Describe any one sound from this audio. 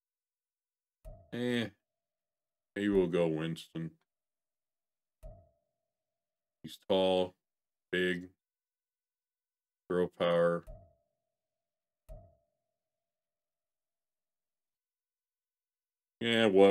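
A man talks casually into a close microphone, in short bursts with pauses.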